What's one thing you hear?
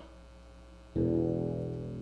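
An acoustic guitar is strummed through an amplifier.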